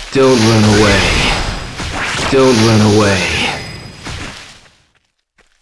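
A crackling electric blast whooshes loudly.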